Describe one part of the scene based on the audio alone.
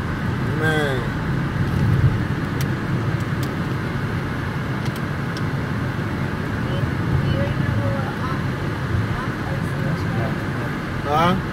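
Tyres roll on pavement.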